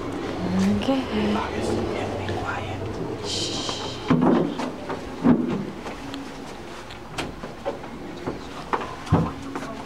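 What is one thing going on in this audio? Soft footsteps patter on a carpeted floor.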